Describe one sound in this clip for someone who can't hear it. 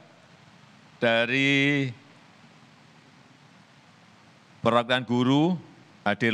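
A middle-aged man reads out a speech slowly through a microphone, with long pauses.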